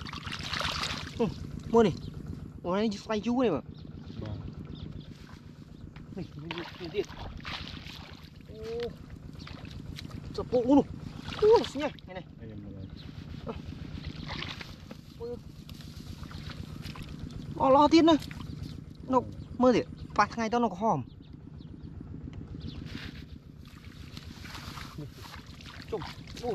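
Water splashes as feet wade through shallow mud.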